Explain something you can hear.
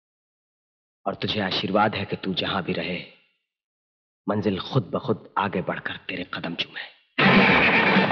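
A man speaks in a low, intense voice close by.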